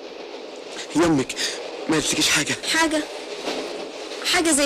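A woman speaks playfully and close by.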